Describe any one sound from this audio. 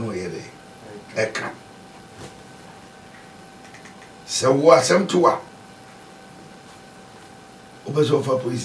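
An elderly man speaks calmly in short bursts into a close microphone.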